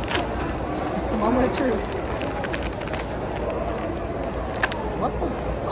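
A plastic snack wrapper crinkles.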